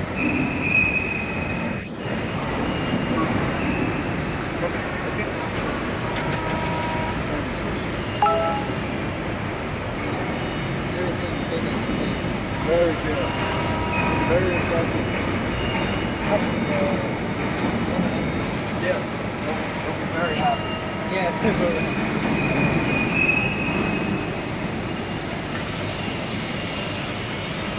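A large machine hums steadily in a big hall.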